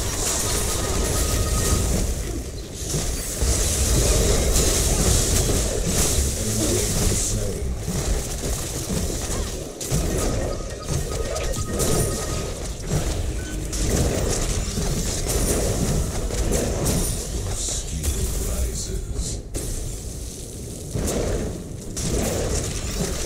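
Game weapons fire and energy blasts crackle and boom.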